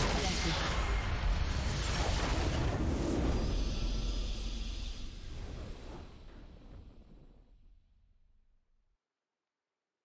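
A loud rumbling explosion from a video game fades away.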